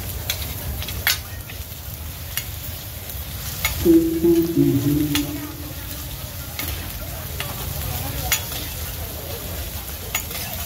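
Metal spatulas clink and scrape against a hot griddle.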